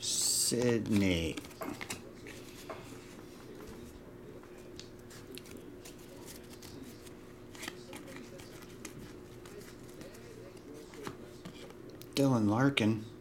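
Trading cards rustle and slide softly as they are shuffled by hand.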